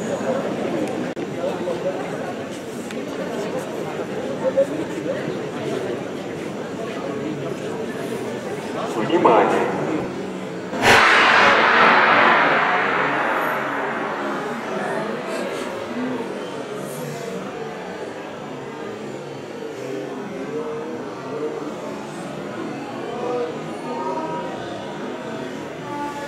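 A crowd murmurs in an echoing indoor hall.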